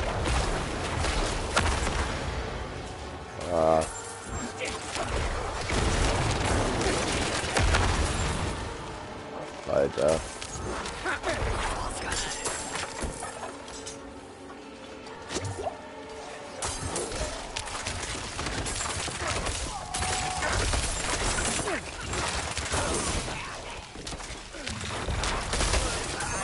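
Magic blasts crackle and boom through a fast fight.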